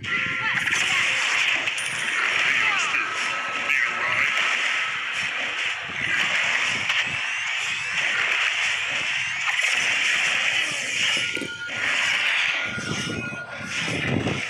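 Game combat effects clash and whoosh repeatedly as a hero fights a large creature.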